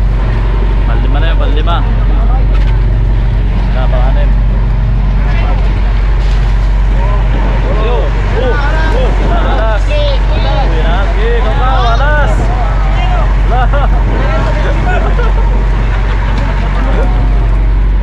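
Several men talk and call out loudly nearby.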